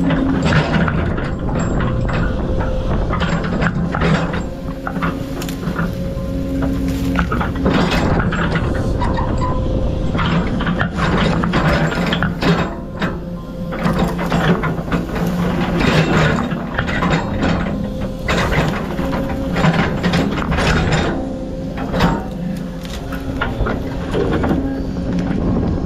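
A heavy machine's diesel engine rumbles steadily close by.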